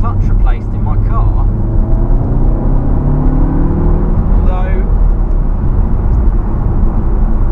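Tyres roll and rumble on a road.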